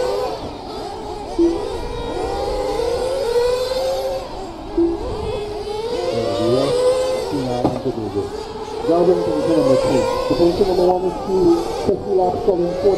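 Small electric model cars whine as they race around, their motors rising and falling in pitch.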